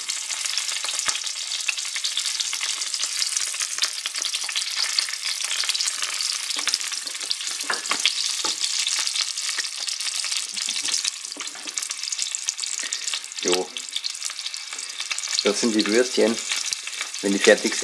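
Sausages sizzle and crackle in hot oil in a frying pan.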